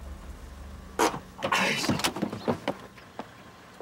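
A young man cries out in distress.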